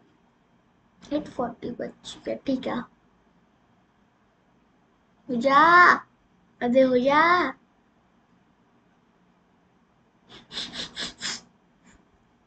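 A young girl speaks in short bursts close to a microphone.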